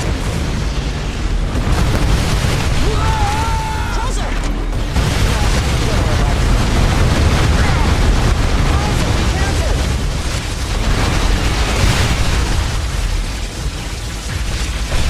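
Guns fire in rapid bursts in a video game.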